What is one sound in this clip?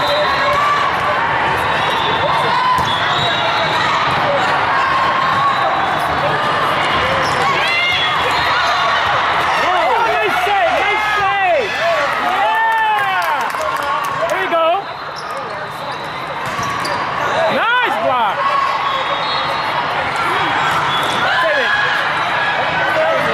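A crowd chatters loudly in a large echoing hall.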